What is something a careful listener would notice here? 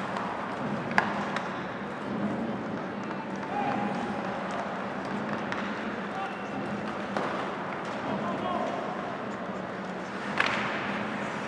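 A stick slaps a puck with a sharp crack.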